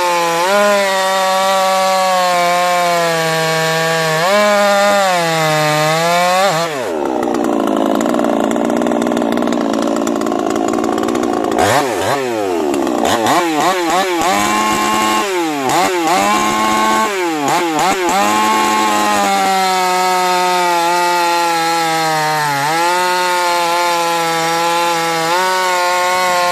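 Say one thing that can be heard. A chainsaw engine idles loudly and revs up and down.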